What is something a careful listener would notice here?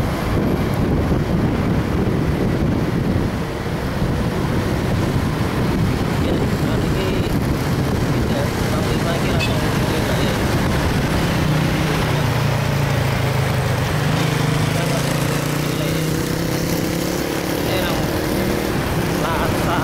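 A motorbike engine hums steadily, rising and falling in pitch.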